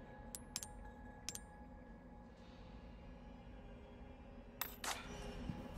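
Short electronic menu clicks chime now and then.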